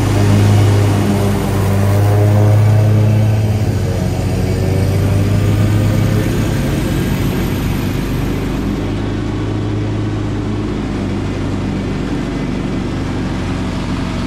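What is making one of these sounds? A riding mower's engine hums loudly and steadily up close.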